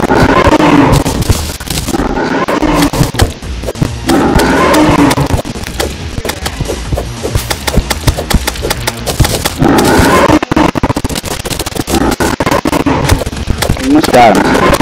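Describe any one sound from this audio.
Thrown weapons strike a monster with rapid, sharp clicks.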